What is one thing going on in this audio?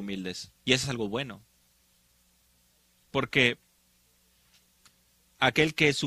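An elderly man speaks with emphasis, close to a microphone, in short phrases with pauses.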